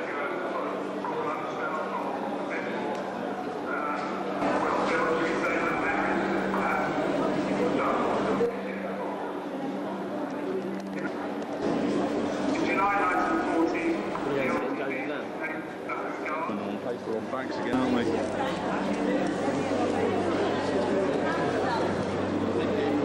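A crowd of men and women chatter all around in an echoing hall.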